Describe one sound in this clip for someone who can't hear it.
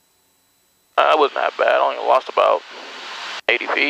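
A young man speaks over a headset intercom.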